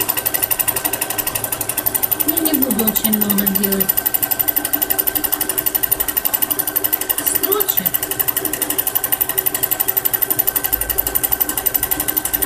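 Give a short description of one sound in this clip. A sewing machine runs steadily with a fast, rattling stitch.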